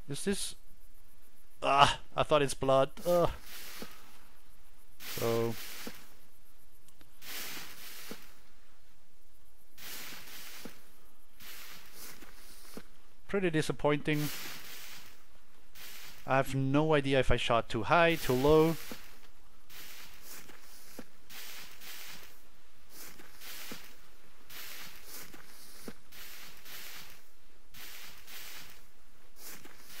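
Grass rustles and swishes as someone crawls through it.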